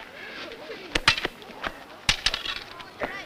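Wooden swords clack together sharply.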